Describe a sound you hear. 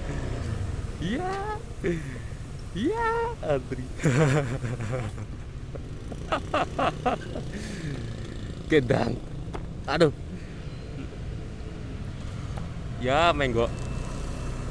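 A motorcycle engine revs sharply several times.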